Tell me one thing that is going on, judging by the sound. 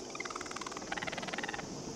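A torch flame burns with a soft crackle.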